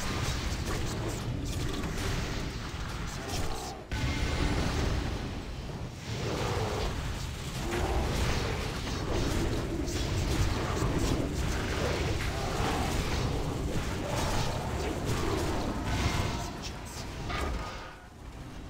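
Magic blasts and weapon blows clash in a loud fantasy battle.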